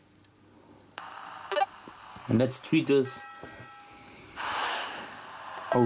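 A phone game plays short electronic jingles.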